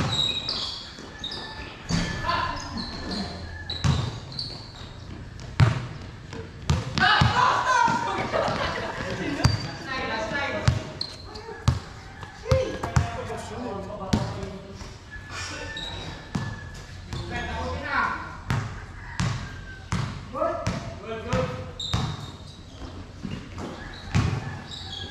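Sneakers squeak on the court.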